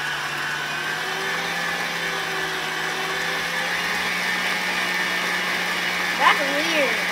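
A stand mixer whirs steadily.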